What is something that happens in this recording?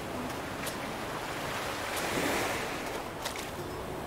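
A bobber plops into the water.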